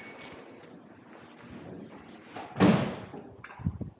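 A glass door clicks and swings open with a thud.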